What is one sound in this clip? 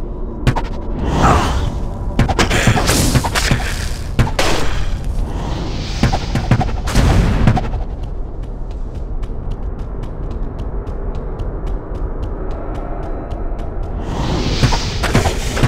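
Fire spells roar and crackle in bursts.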